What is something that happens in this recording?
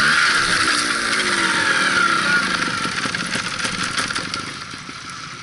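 A motorbike engine idles and revs close by.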